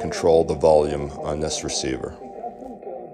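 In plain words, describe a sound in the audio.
A voice comes loudly through a radio speaker, then cuts away.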